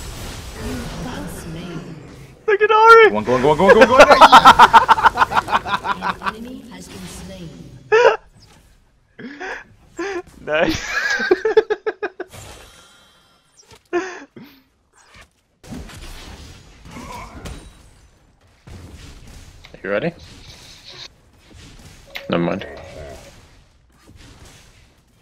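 Magic spell effects whoosh and crackle in short bursts.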